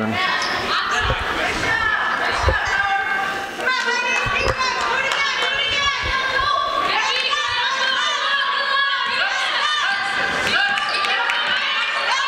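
A basketball thuds as it is dribbled.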